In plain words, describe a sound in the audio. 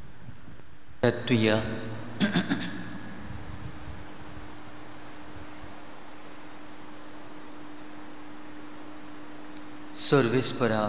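An elderly man chants through a microphone in an echoing hall.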